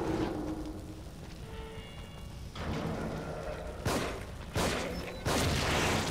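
A fire crackles and burns.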